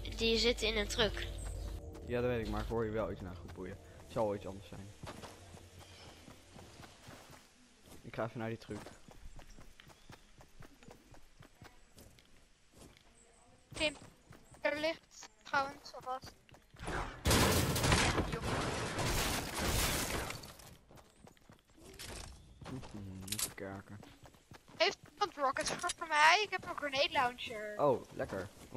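Footsteps run over grass and gravel.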